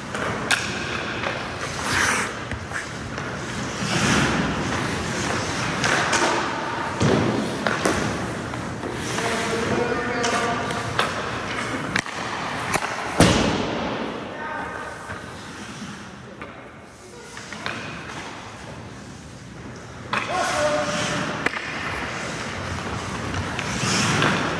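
Hockey skates scrape and carve on ice in a large echoing rink.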